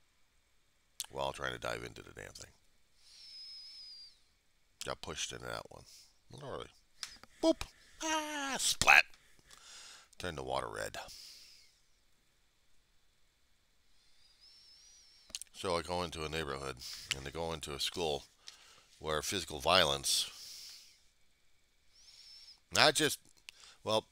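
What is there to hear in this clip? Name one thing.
A man speaks in bursts, with pauses, close to a headset microphone.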